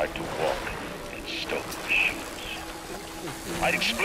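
A wrench swishes through the air.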